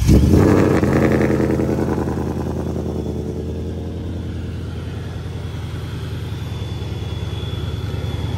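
A car engine idles with a deep, steady rumble.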